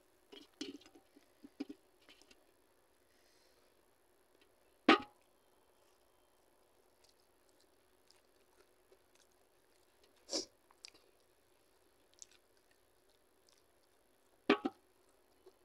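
A metal spoon clinks against a steel bowl.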